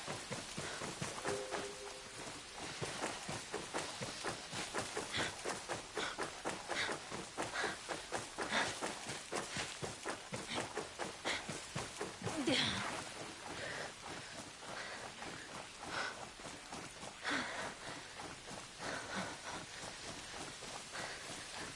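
Footsteps rustle quickly through grass and undergrowth.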